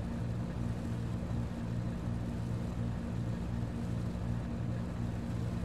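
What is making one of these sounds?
A boat engine hums low and steady with a pulsing throb.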